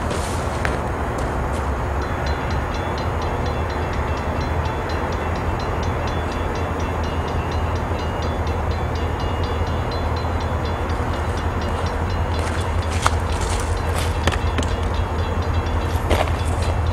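Traffic hums steadily on a distant road.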